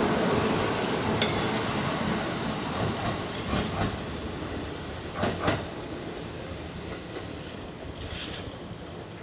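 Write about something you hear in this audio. An electric train pulls away into the distance, its rumble fading.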